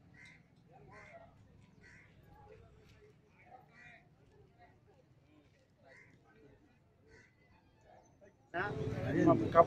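Men murmur quietly at a distance outdoors.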